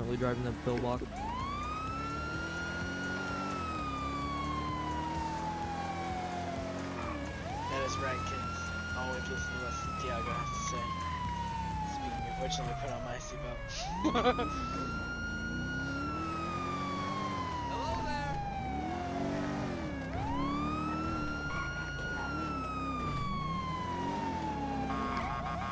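A police siren wails up and down in long, repeating sweeps.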